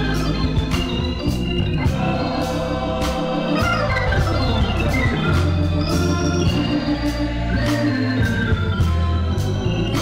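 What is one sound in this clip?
A woman leads the singing into a microphone.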